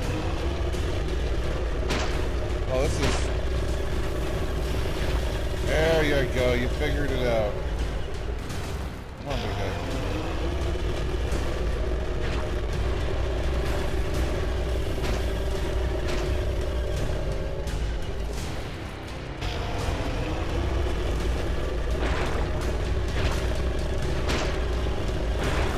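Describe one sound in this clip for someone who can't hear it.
Game music drones steadily with a deep pulsing beat.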